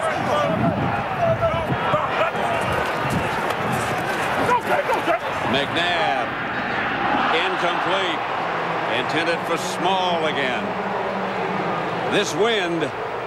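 A large stadium crowd roars outdoors.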